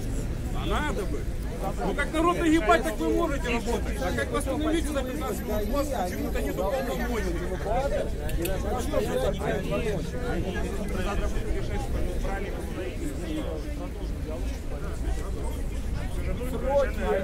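A crowd of men and women talk over one another outdoors, close by.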